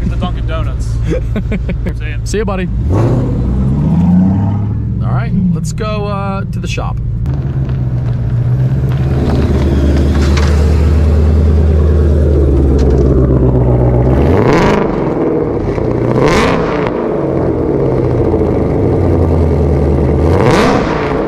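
A car engine rumbles deeply and steadily.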